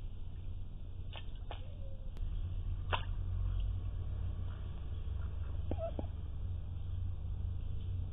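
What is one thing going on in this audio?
A duck paddles and splashes softly in water close by.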